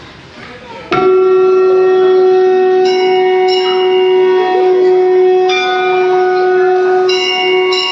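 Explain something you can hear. Music with steady held notes plays through loudspeakers.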